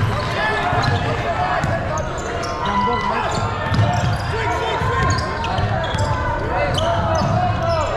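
A basketball thumps on the floor as it is dribbled.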